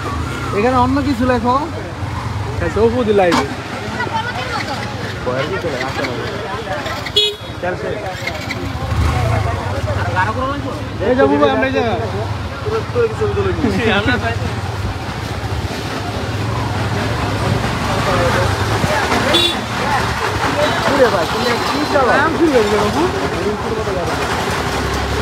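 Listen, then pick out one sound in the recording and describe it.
Young men talk and call out nearby, outdoors.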